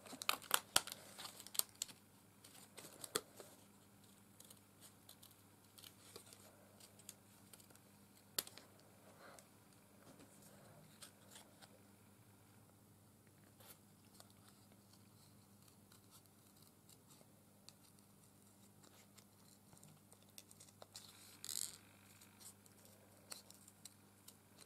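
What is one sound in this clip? Small scissors snip through paper.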